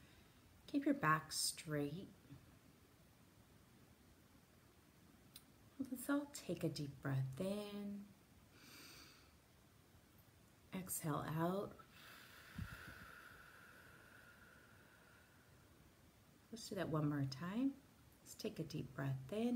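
A woman speaks calmly and slowly, close to a microphone, with long pauses.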